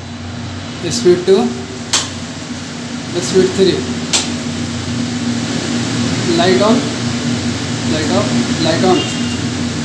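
Buttons on a range hood click.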